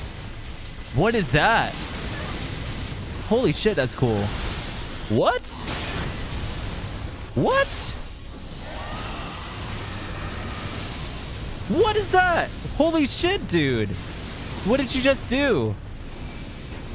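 A man exclaims with excitement, close to a microphone.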